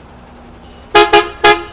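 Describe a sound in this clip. A bus horn honks loudly several times.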